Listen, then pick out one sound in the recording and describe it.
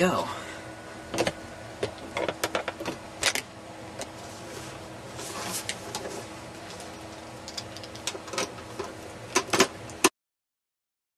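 A metal panel clicks and rattles as hands handle it.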